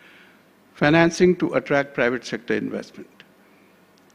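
A man speaks calmly into a microphone.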